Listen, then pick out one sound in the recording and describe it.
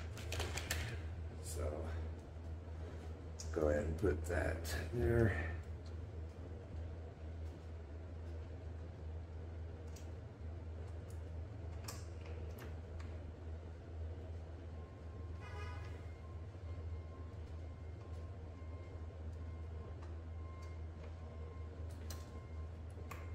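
Metal tools click and clink against bicycle parts.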